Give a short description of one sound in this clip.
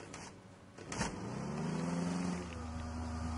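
A metal hatch creaks open.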